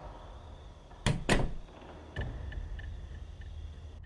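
A door opens.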